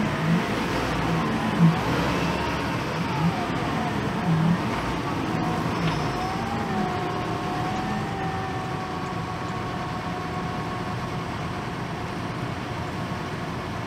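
A heavy wheel loader's diesel engine rumbles and whines steadily.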